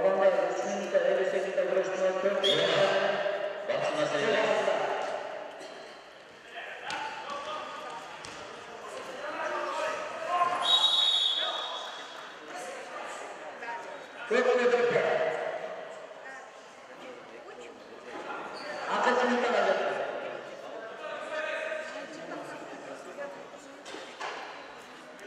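Spectators in a large echoing hall chatter and call out.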